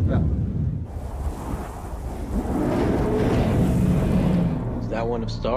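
Wind roars, blowing dust across open ground.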